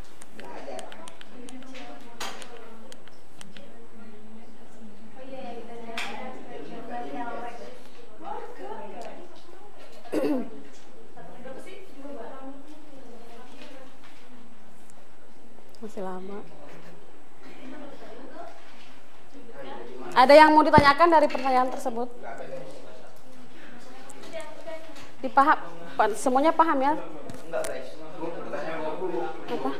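Young people talk quietly in a small group.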